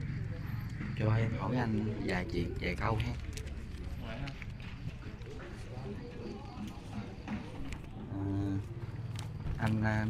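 A man speaks close by in a calm voice.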